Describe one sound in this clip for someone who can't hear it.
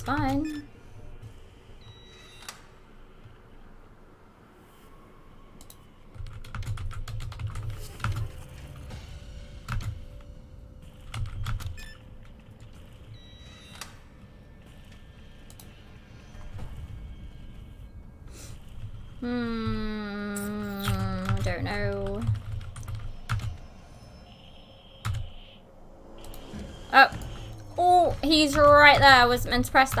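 Keypad buttons beep and click as they are pressed.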